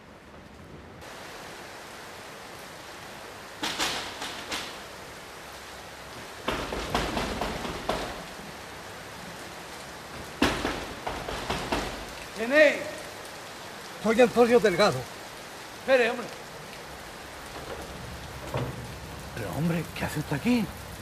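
Heavy rain falls steadily outdoors.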